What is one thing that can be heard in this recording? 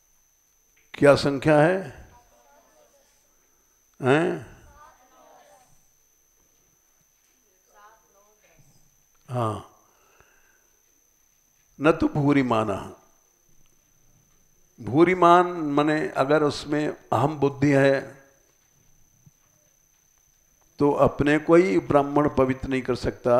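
An elderly man speaks calmly into a headset microphone, in short phrases with pauses.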